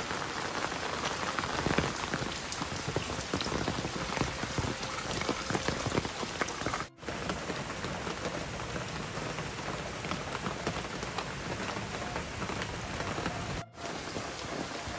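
Heavy rain pours steadily outdoors.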